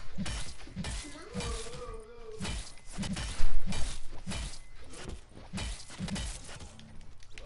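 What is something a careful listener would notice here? A pickaxe strikes over and over.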